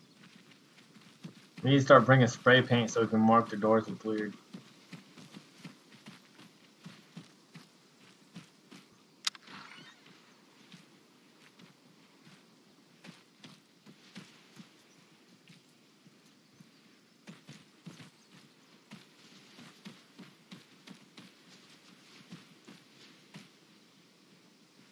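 Footsteps crunch steadily on gravel and stone.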